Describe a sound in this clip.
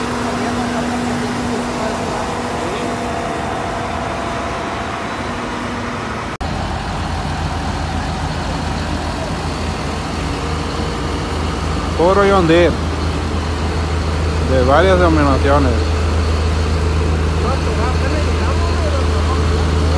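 Several tractor engines rumble steadily close by.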